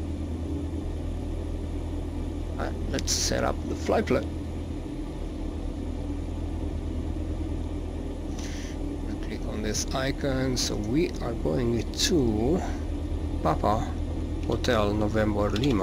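An aircraft engine idles with a steady low hum.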